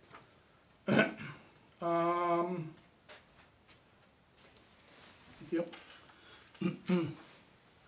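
A middle-aged man speaks aloud nearby, in short bursts.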